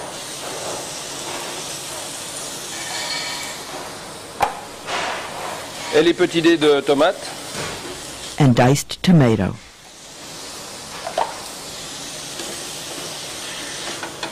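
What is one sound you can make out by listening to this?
Food sizzles steadily in a pan.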